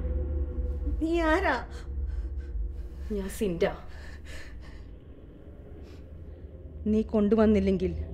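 A young woman speaks softly and expressively close by.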